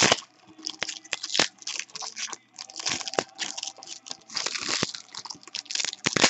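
Plastic wrapping crinkles and crackles close by.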